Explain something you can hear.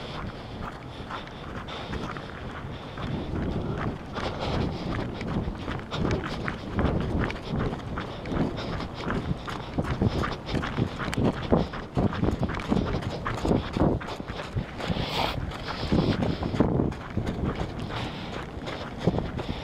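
Footsteps crunch on a gravel track.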